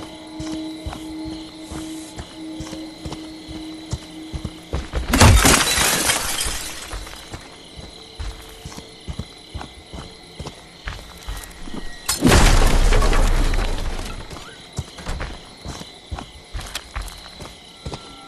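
Heavy footsteps crunch on leaves and gravel.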